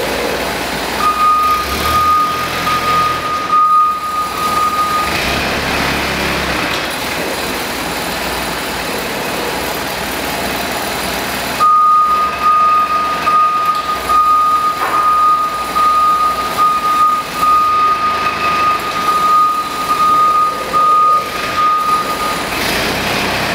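A forklift's warning beeper sounds in a steady, continuous tone.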